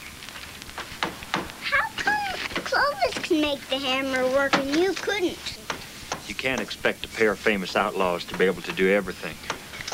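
An elderly man talks with animation close by.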